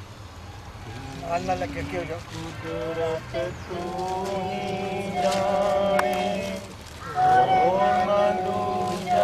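A group of men and women sing together slowly.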